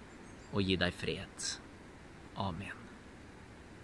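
A young man speaks calmly and close to the microphone.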